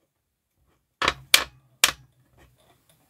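Plastic figures click and tap together.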